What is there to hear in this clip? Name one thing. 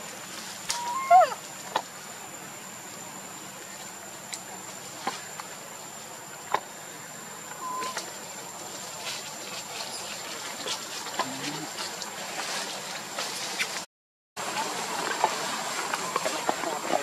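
A plastic bag crinkles and rustles in a monkey's hands.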